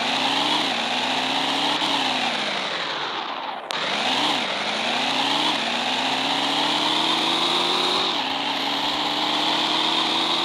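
A sports car engine revs up through the gears.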